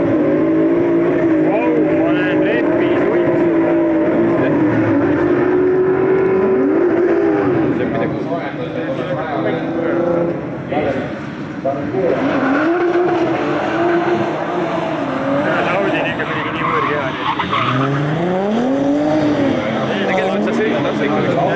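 A rally car engine revs hard, roaring up and down through the gears.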